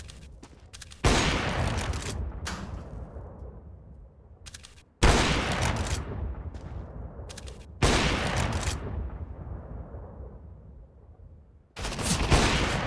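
A rifle fires loud single shots that boom and echo slowly away.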